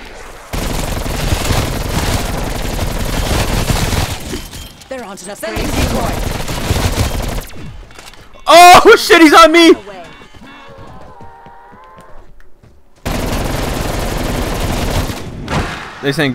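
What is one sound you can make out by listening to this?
A rapid-firing gun shoots in long, loud bursts.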